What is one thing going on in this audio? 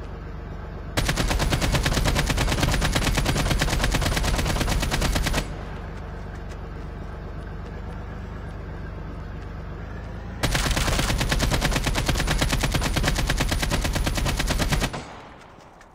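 Rapid gunfire bursts out loudly in fast repeated shots.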